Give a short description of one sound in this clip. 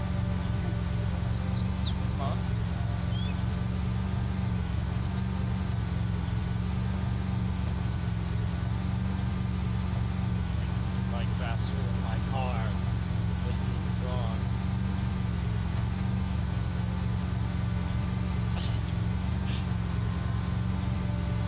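A heavy vehicle's engine rumbles steadily as it drives along a road.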